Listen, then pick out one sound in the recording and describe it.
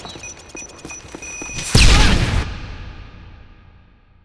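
An explosion booms loudly and its rumble slowly fades.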